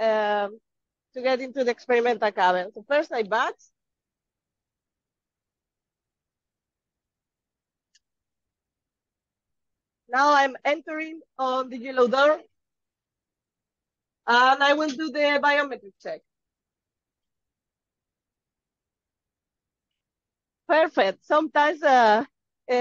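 A young woman talks calmly and clearly, close to a microphone, with pauses in between.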